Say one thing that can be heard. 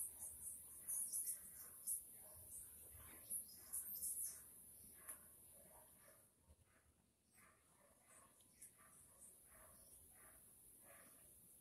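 Potting soil rustles and crumbles under hands.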